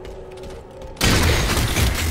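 An energy blast crackles and explodes.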